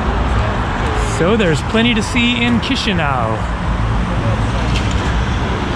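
Traffic rumbles steadily along a city street.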